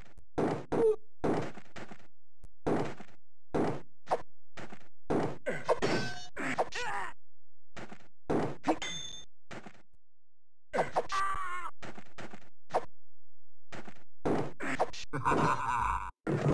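Swords clash with sharp metallic clangs.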